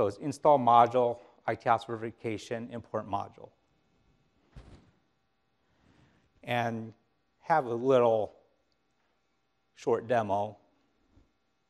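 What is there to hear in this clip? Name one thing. An older man speaks into a microphone over a loudspeaker in a hall, with pauses between phrases.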